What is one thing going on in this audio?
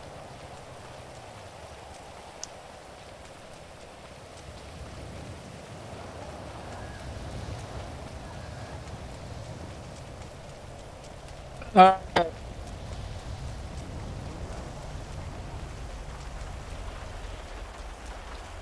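Footsteps run quickly on a wet road.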